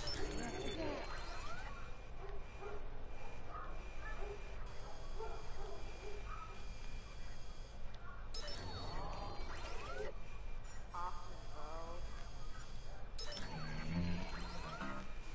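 Electronic glitchy whooshes sweep up and down.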